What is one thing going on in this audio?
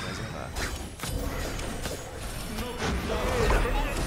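Magic blasts and explosions crackle and boom in a fight.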